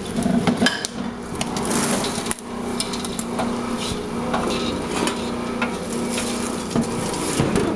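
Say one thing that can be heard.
A metal pot scrapes and clanks against a metal bowl.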